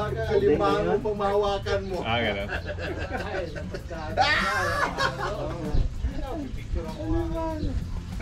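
Young men talk casually nearby.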